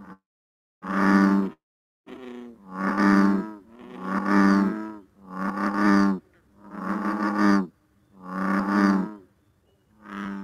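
A bullfrog croaks in deep, repeated bursts through a computer speaker.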